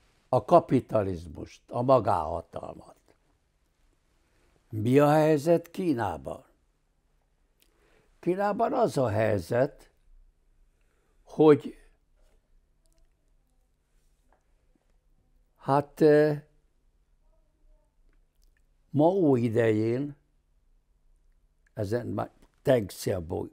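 An elderly man speaks calmly and deliberately in short phrases, close to a microphone, with long pauses.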